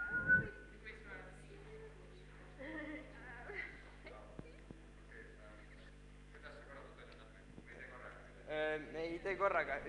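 A boy speaks into a microphone through loudspeakers in an echoing hall.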